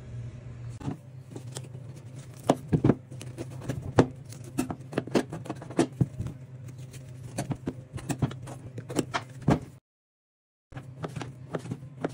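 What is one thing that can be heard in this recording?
A knife taps and knocks on a cutting board.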